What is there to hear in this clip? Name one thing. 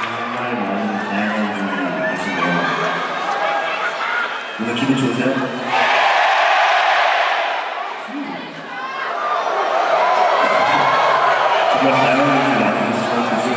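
A young man sings into a microphone over loudspeakers.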